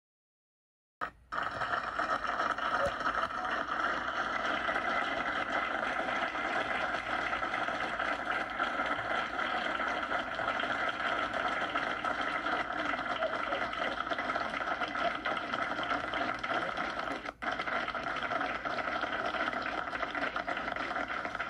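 A crowd applauds and cheers loudly in a large room.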